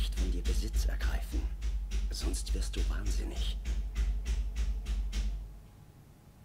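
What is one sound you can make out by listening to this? A man speaks quietly and tensely.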